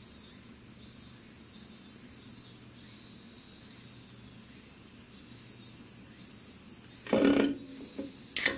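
An aluminium can knocks against a wooden table.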